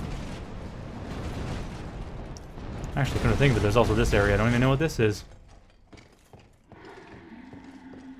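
Armoured footsteps run on stone.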